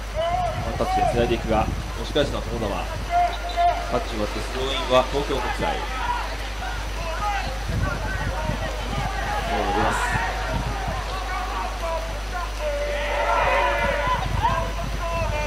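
Young men shout to one another across an open field outdoors.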